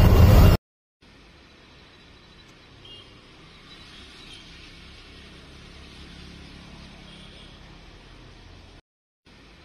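Vehicles splash slowly through deep floodwater.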